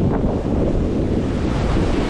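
Small waves lap against the shore.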